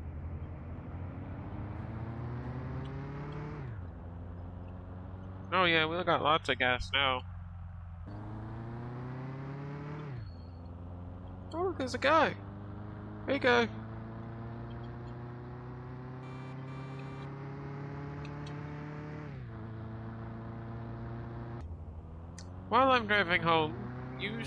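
A car engine revs up through the gears, dropping in pitch at each gear change.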